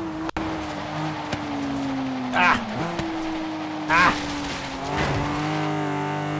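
A car engine revs steadily higher as the car speeds up.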